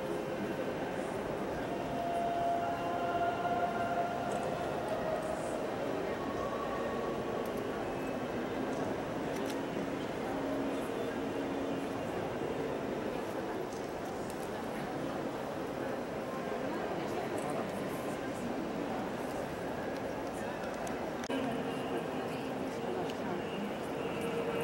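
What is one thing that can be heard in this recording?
A crowd of people murmurs and chatters in a large, echoing hall.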